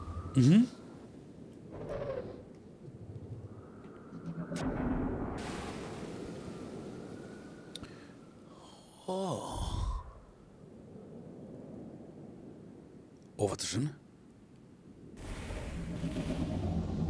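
A man talks into a close microphone with animation.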